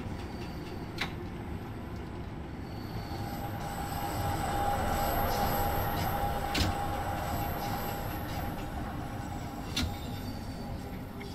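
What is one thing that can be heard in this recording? A train rumbles along rails through a tunnel.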